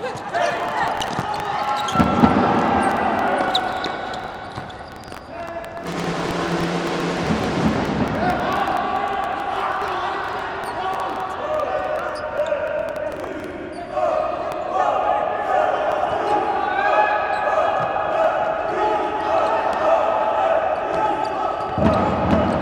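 A ball is kicked with sharp thuds on an indoor court.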